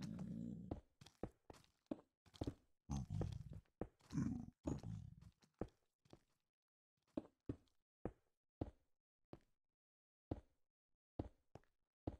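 Stone blocks crack and crunch as they are dug out, in short repeated knocks.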